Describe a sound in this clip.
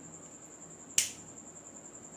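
A lighter clicks as it is struck.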